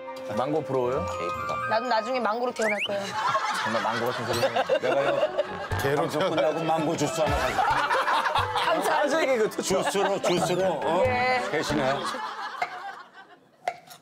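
Several men and women talk and laugh loudly together.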